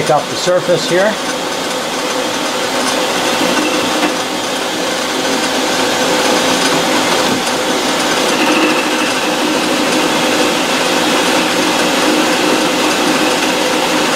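A lathe runs with a steady, high whirring hum.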